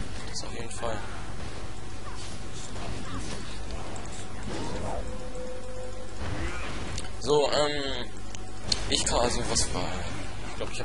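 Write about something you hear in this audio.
Game spells crackle and clash in a fantasy battle.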